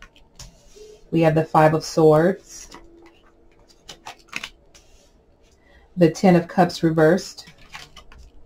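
Playing cards are laid down softly on a table.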